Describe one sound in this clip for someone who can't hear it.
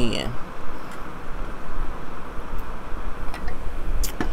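A woman sips a drink through a straw.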